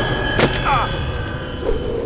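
A sword swishes and clangs in a fight.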